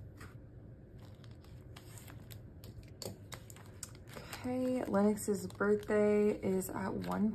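Plastic binder pages rustle and flip.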